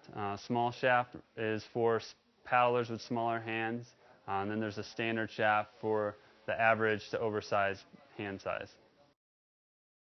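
A young man speaks calmly and clearly to the listener, close up.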